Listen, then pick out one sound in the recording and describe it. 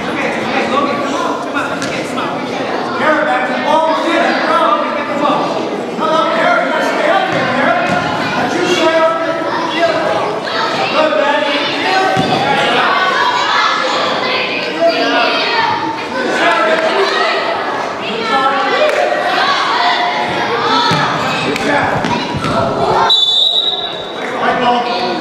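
Children shout and cheer throughout, echoing in a large hall.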